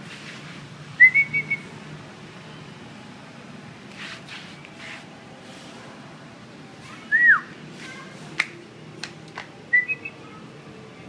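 A malamute puppy whines in short high yelps.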